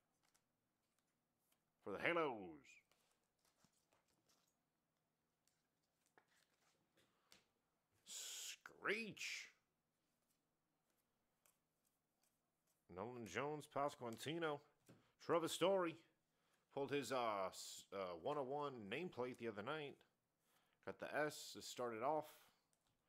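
Trading cards rustle and slide softly between hands.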